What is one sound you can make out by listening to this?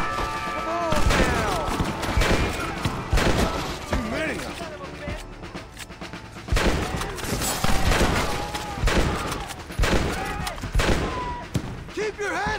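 Rifle shots crack repeatedly nearby.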